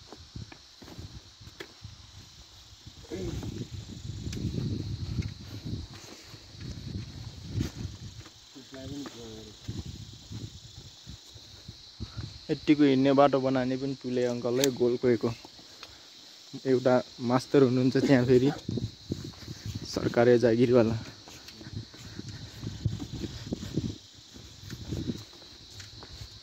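Footsteps crunch on loose stones.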